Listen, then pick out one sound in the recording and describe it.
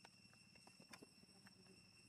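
A young monkey squeals softly close by.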